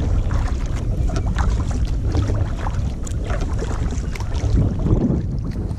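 Small waves lap against a kayak hull.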